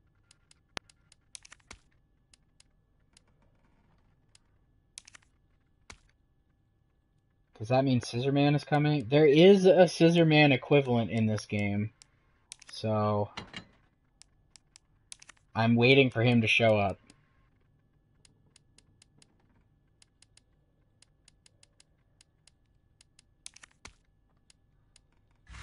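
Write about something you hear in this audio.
Soft menu clicks tick now and then as a cursor moves through a list.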